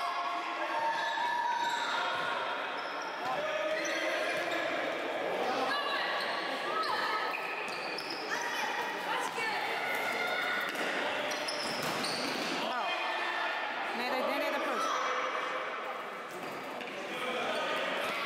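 Spectators call out from the side of an echoing indoor hall.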